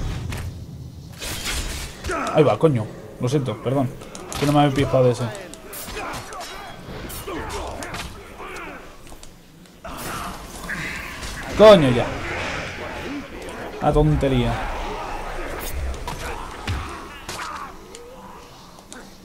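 Blades clash and strike in a fast fight.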